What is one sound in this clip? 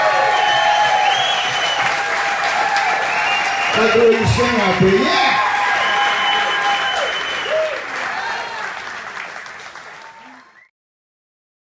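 A live band plays loudly in a large hall and then fades out.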